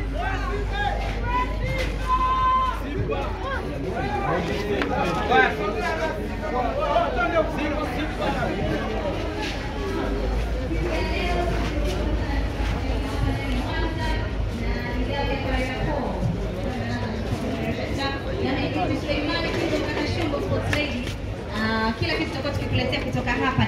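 A large crowd of men and women chatter and shout excitedly nearby, outdoors.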